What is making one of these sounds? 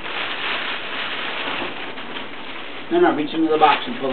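A plastic bag rustles and crinkles up close.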